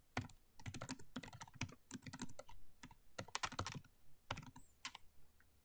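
Keys click rapidly on a keyboard.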